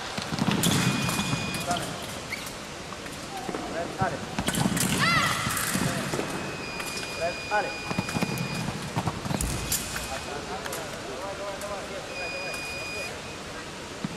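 A scoring machine beeps with a steady high tone.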